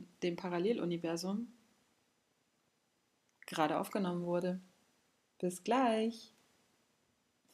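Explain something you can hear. A woman speaks calmly and warmly, close to the microphone.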